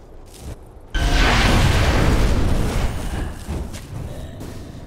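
A fiery blast explodes with a loud roar.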